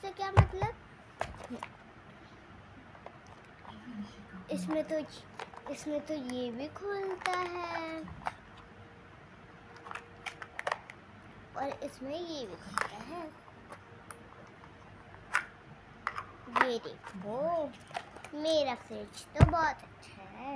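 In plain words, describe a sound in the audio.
A plastic case clicks open and shut.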